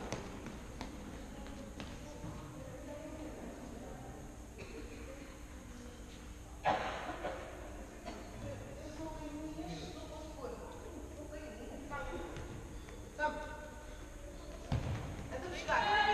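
Players' shoes squeak on an indoor court, in a large echoing hall.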